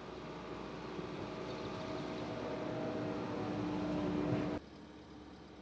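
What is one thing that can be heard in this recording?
A diesel engine rumbles loudly and steadily close by.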